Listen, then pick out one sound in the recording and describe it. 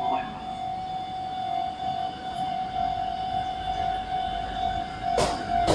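An electric commuter train with inverter-driven motors pulls away from a station.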